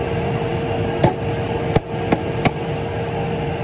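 A wooden board knocks against a metal box.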